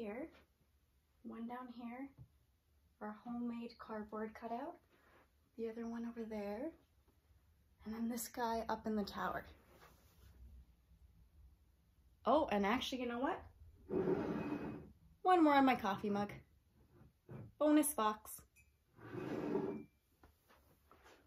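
A young woman speaks calmly and clearly close by, in short phrases with pauses.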